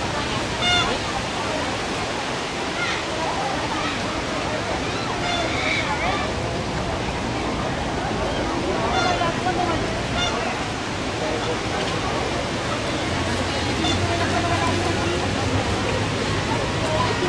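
A large outdoor crowd chatters in a steady murmur.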